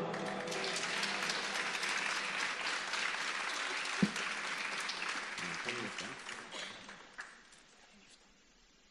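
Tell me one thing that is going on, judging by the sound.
Applause from an audience fills a large echoing hall and slowly dies away.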